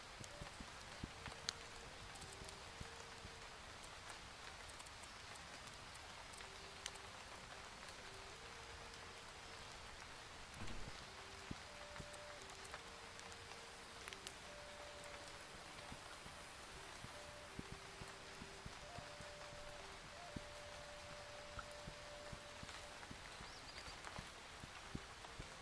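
A horse's hooves thud softly on grassy ground.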